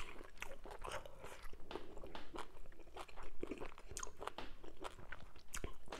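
Fingers squelch and pick at soft food on a plate.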